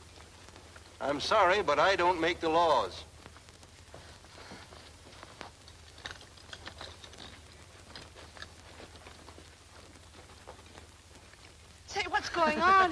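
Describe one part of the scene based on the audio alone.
A woman sings loudly with a wavering voice nearby.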